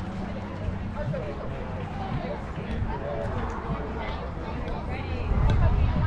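Young players and adults call out and cheer outdoors.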